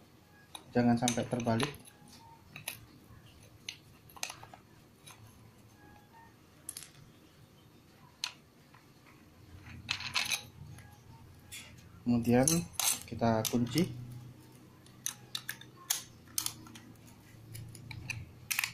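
A grinding disc clicks as it is fitted onto an angle grinder's spindle.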